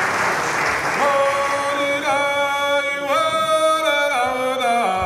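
A group of men sing together in close harmony.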